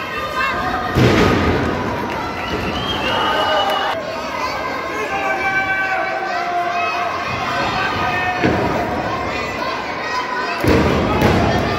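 Wrestlers' bodies thud onto the ring mat.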